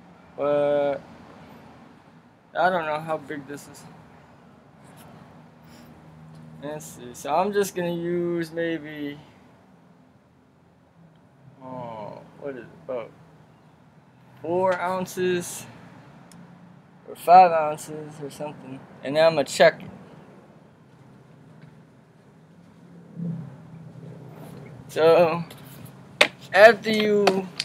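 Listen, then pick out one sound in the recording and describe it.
A man talks calmly close by, in short bursts with pauses.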